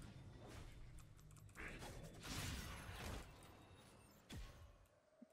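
Video game effects whoosh and crackle.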